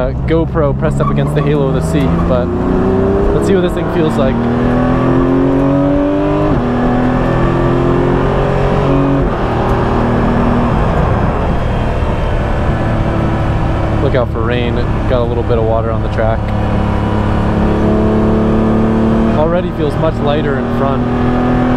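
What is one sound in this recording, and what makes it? A race car engine roars loudly from inside the cabin, rising and falling in pitch as the gears shift.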